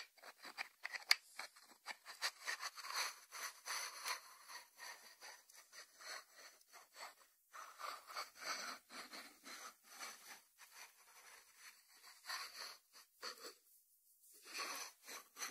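Fingertips tap and rub on the lid of a ceramic dish.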